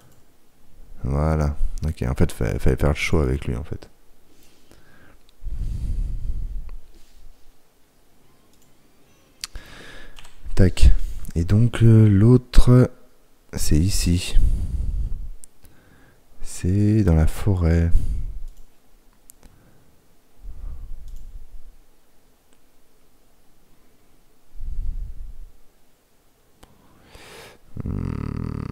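A man talks casually into a close microphone, with pauses.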